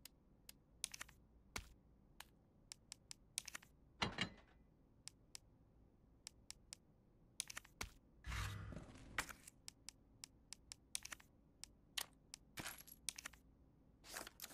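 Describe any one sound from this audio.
Menu clicks tick quickly, one after another.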